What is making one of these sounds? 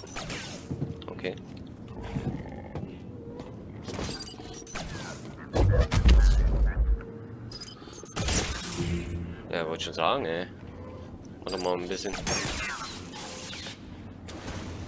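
A lightsaber hums and buzzes.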